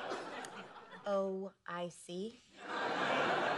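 A young woman speaks casually.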